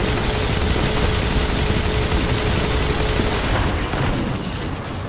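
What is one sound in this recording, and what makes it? Rapid gunfire rattles with sharp impacts.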